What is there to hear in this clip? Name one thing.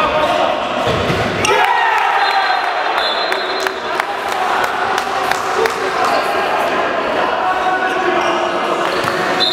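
A ball bounces on a hard floor with echoing thuds.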